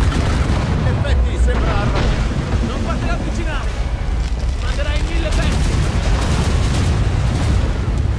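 Heavy waves crash and splash against a ship's hull.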